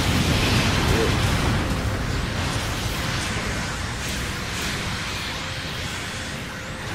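Gunfire and explosions boom in a video game.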